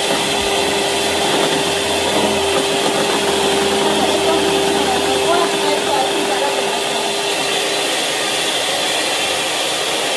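An electric hand mixer whirs steadily as its beaters churn a liquid batter.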